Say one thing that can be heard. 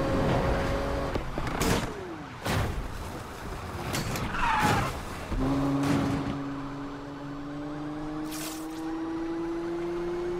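A sports car engine roars and slowly revs higher.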